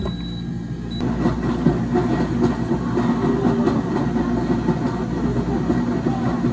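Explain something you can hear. Milk pours and splashes into a plastic jug.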